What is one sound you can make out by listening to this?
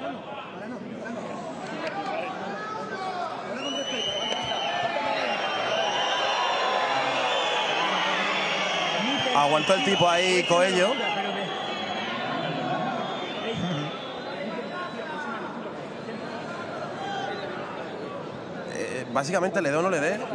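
A large crowd cheers, chatters and whistles in a big echoing arena.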